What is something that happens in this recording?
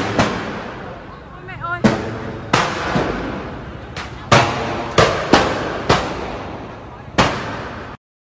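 Loud bangs burst from a fire, one after another, each ringing out.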